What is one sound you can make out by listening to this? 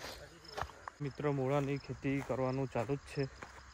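A young man speaks with animation close to the microphone.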